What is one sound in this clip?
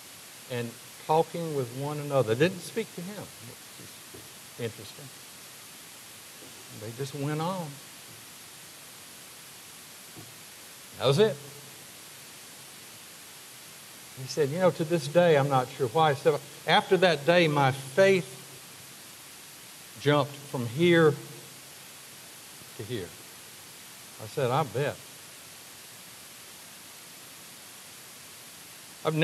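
A middle-aged man preaches with emphasis through a microphone, pausing often.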